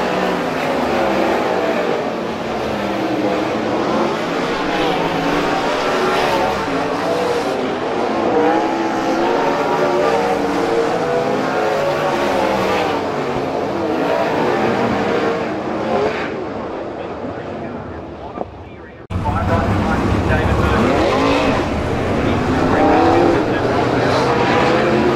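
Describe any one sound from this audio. Race car engines roar and whine loudly as the cars speed past.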